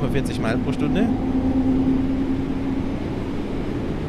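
A train's electric motor whines as the train speeds up.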